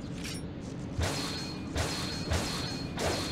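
Electricity crackles and buzzes in sharp bursts.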